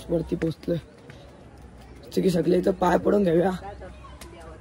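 A young man talks with animation close to the microphone, outdoors.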